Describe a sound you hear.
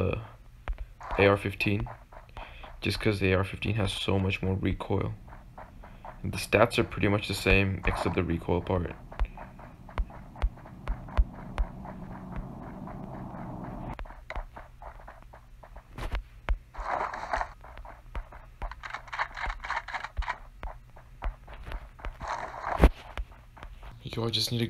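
Footsteps tread on a floor.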